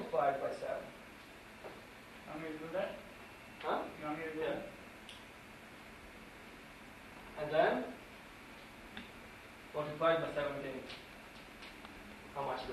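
A young man speaks calmly in short bursts with pauses.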